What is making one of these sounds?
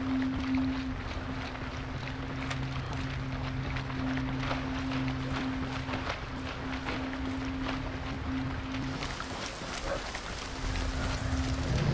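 Footsteps rustle through tall grass and crops.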